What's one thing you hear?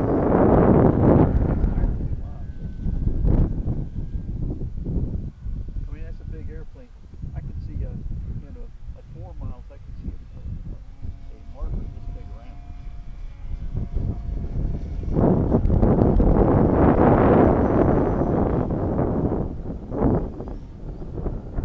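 A model airplane engine buzzes faintly overhead.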